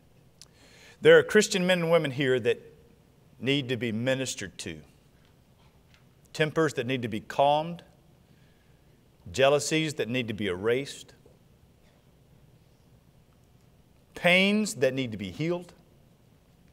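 A man speaks slowly and earnestly through a microphone, with long pauses.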